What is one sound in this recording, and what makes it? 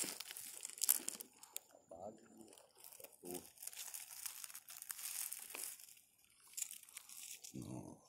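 Small stones crunch and rattle as a hand picks through gravel up close.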